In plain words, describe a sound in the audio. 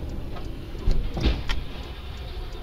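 A heavy truck crashes and tips over with a loud bang.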